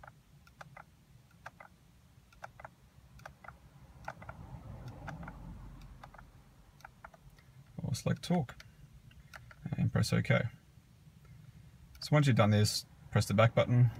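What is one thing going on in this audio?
A finger clicks buttons on a steering wheel in short, quick taps.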